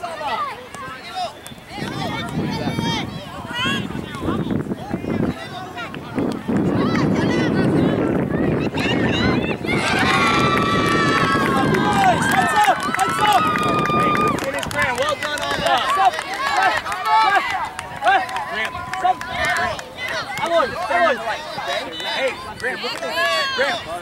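Children and adults shout and call out across an open field.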